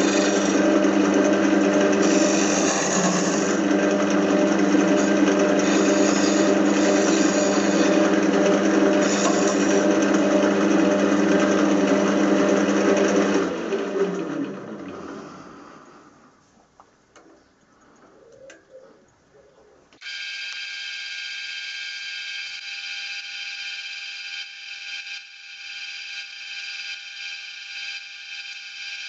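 A lathe motor hums and whirs, winds down to a stop, then starts up again.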